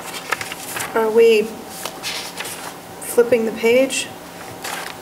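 A woman speaks briefly in short bursts, heard from across a room.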